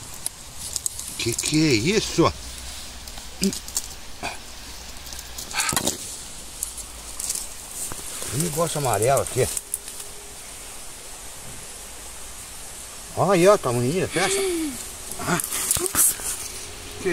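A shovel scrapes and crunches into dry soil.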